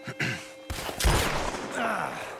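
A gunshot cracks loudly.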